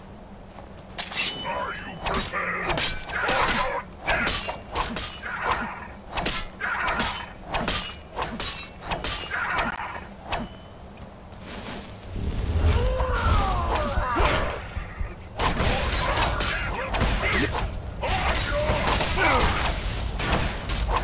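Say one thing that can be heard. Swords clash and clang in quick blows.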